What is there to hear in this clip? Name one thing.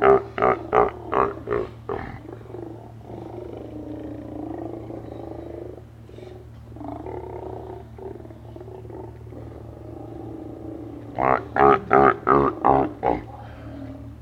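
Sea lions bark loudly in quick bursts close by.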